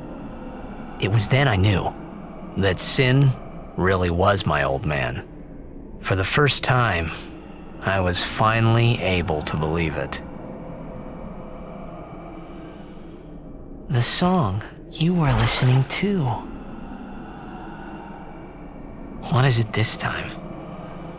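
A young man speaks calmly and slowly.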